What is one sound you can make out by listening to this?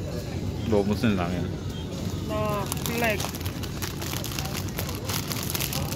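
A plastic noodle wrapper crinkles in a hand.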